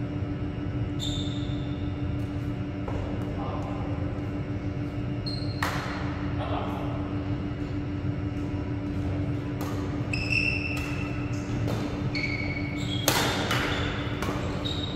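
Shoes squeak on a hard court floor.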